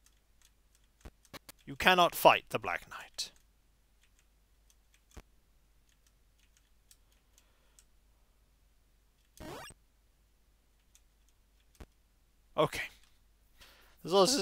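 Short electronic game sound effects blip now and then.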